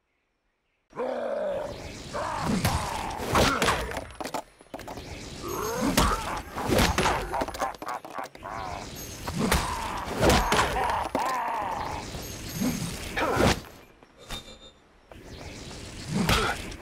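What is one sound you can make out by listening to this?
Punches and kicks thud as figures fight.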